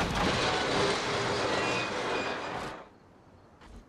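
Metal scrapes and grinds along the road as an overturned car slides.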